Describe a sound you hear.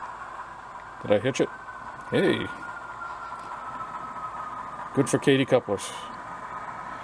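A model locomotive's horn sounds in short blasts.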